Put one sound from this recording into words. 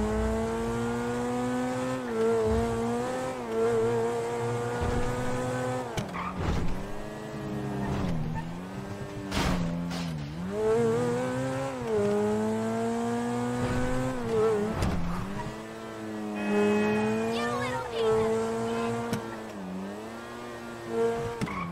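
A sports car engine roars steadily, rising and falling in pitch as the car speeds up and shifts gears.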